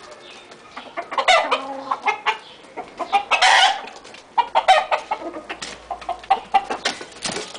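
Roosters cluck and squawk close by.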